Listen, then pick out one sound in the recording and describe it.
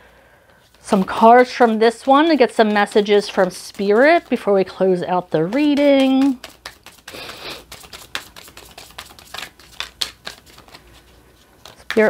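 Playing cards riffle and flick as a deck is shuffled.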